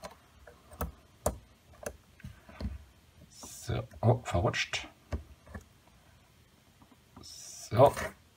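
A metal drawing compass clicks and creaks as its legs are adjusted by hand.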